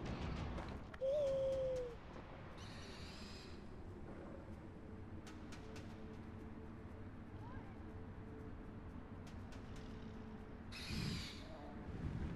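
An owl gives a shrill screech.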